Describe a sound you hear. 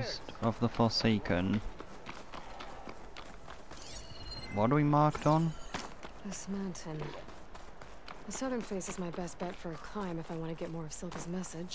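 Footsteps run over grass and rock.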